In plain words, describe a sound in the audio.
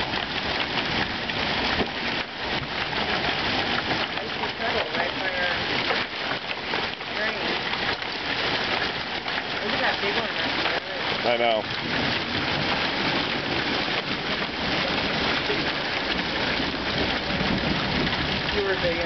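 Hail patters and rattles steadily on grass and pavement outdoors.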